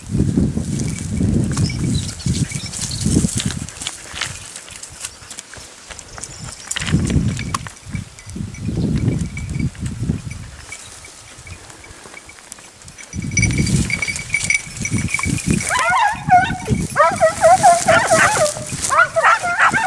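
Wind blows in gusts through rustling leafy bushes.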